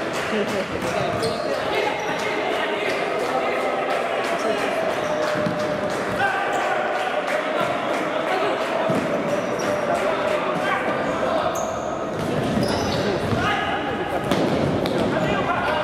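Young men shout in an echoing sports hall.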